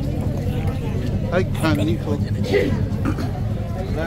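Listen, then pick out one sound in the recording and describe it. A middle-aged man speaks close by.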